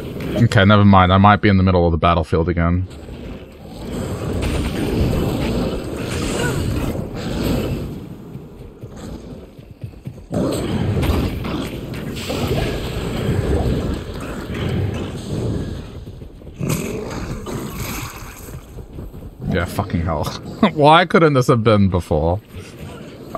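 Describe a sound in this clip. Magic spells hiss and burst.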